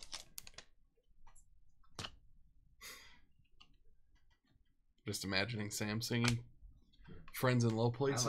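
Trading cards slide and flick against each other as they are shuffled by hand.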